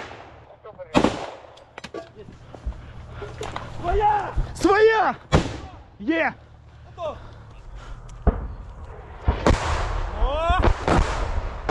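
Gunshots crack sharply, close by.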